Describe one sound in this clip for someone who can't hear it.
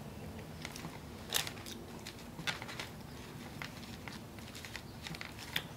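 Paper crinkles and rustles as food is picked up.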